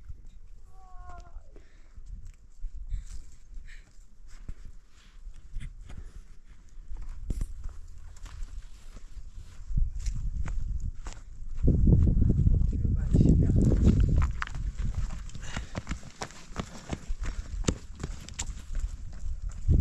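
Footsteps crunch on loose stones and gravel.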